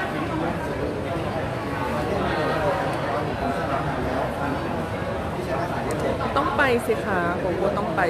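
A man asks questions into a microphone close by.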